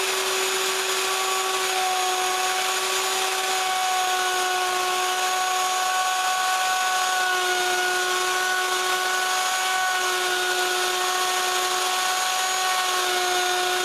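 A router bit cuts into wood with a rough grinding hiss.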